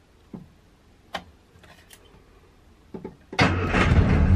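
An ignition key clicks in a car.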